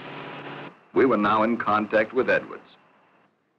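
A man speaks through a radio, muffled by a mask.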